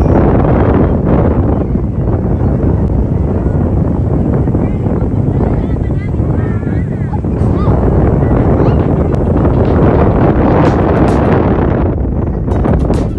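Wind rushes and buffets outdoors throughout.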